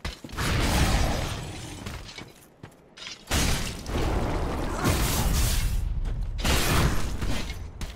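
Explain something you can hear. Icy crystals burst and crackle with a loud rushing roar.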